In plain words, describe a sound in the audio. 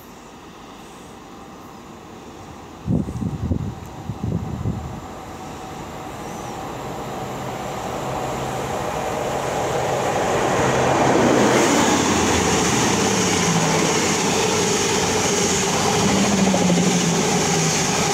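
A diesel train engine rumbles, growing louder as the train approaches.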